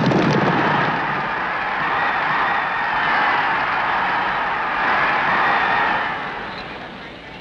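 A large crowd cheers loudly.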